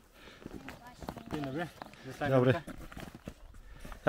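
A man speaks close by, a little out of breath.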